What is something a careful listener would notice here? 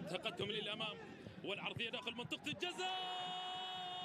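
A football is kicked hard toward the goal.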